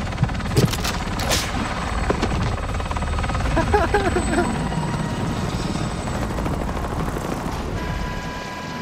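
A helicopter's rotor thumps and roars loudly overhead.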